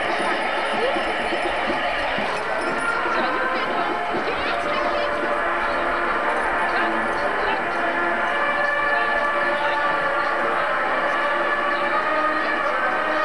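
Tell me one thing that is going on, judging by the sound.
A crowd of onlookers murmurs and chatters outdoors.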